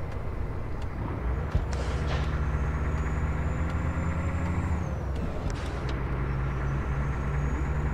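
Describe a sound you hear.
A truck's engine revs rise and fall with gear changes.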